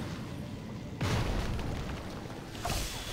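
A magical explosion booms with a crackling burst.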